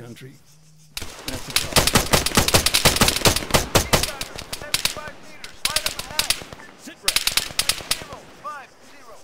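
A rifle fires rapid bursts of shots, loud and close.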